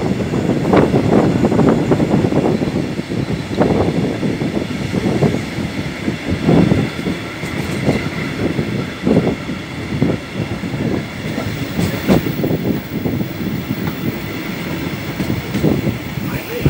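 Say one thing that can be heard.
A train rumbles along the tracks at speed.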